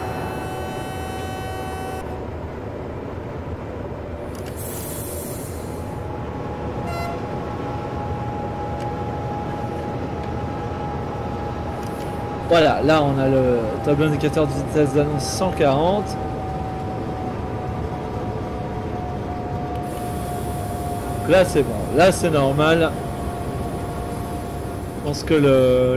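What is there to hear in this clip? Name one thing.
An electric train motor whines with a steady hum.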